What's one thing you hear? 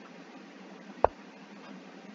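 A chess piece move sounds with a single short click.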